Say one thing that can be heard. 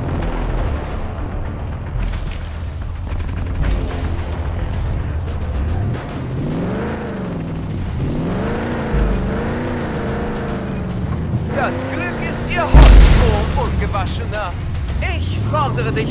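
A buggy's engine rumbles and revs as it drives.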